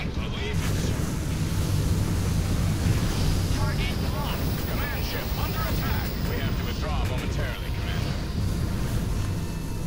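Laser weapons fire in short bursts.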